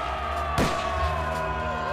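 A man shouts fiercely nearby.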